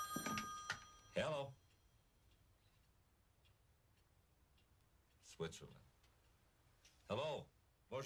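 A young man talks into a telephone.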